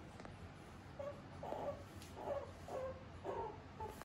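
A small animal gives short soft chirping calls.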